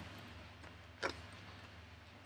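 A card is laid down softly on a table.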